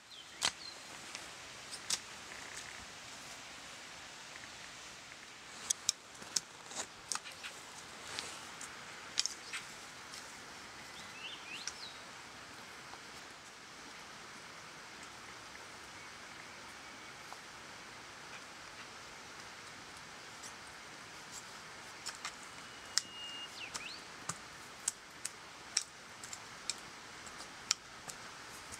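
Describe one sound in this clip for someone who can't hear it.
A hoe chops into loose soil with dull thuds.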